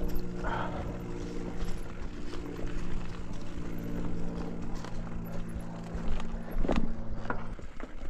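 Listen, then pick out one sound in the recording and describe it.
A bicycle's frame rattles and clunks over bumps.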